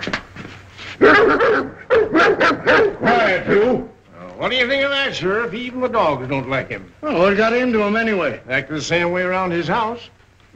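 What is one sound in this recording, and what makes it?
An elderly man talks firmly nearby.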